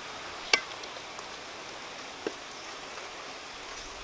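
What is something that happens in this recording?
A spoon stirs and scrapes in a metal pot.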